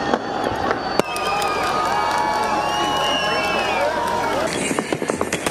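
A large crowd cheers and whistles outdoors.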